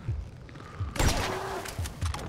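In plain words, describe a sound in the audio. A scoped hunting rifle fires a single loud shot.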